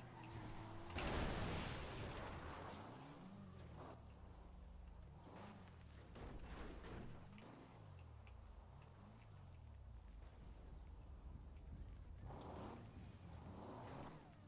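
Car tyres skid and crunch over rough ground.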